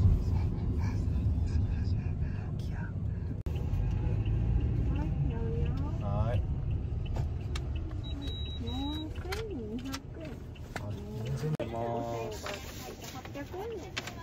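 A car engine rumbles low and steady from inside the car as it drives.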